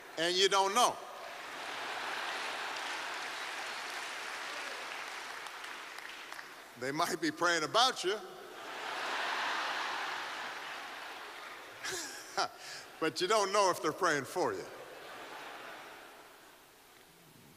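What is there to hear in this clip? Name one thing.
A large audience laughs and applauds.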